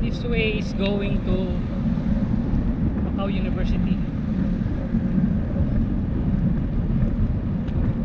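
Wind rumbles loudly across a moving bicycle.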